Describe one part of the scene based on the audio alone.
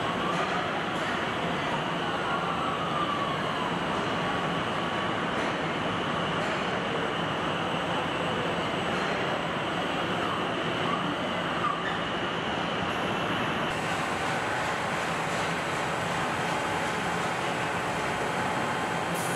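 Factory machinery hums steadily in a large echoing hall.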